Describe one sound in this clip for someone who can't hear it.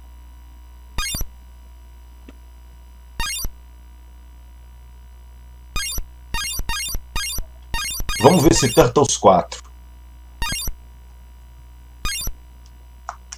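Short electronic bleeps sound, one after another.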